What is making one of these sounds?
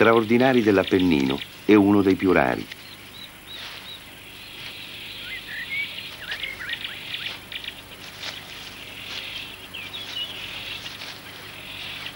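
A bear pushes through dense brush, rustling leaves.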